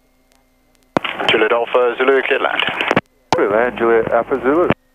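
A man speaks calmly over a radio intercom.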